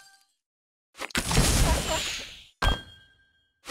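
A sparkling blast whooshes loudly.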